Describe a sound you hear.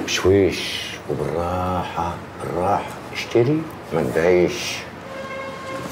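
An older man speaks quietly close by.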